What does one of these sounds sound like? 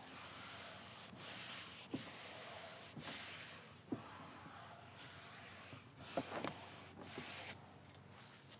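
Hands rub and smooth a thin wooden sheet.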